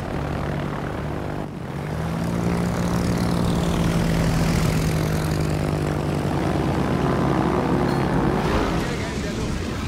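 Propeller plane engines drone steadily.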